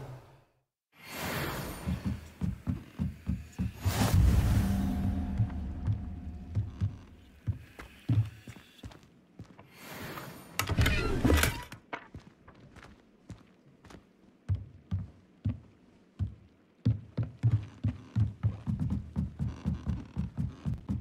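Footsteps thud steadily on wooden floors and stairs.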